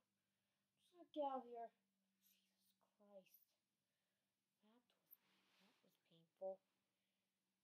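A child speaks up close in short bursts.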